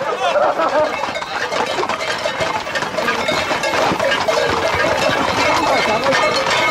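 A crowd of men shouts and talks excitedly close by.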